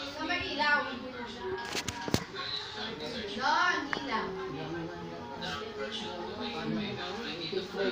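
Women talk nearby in a room.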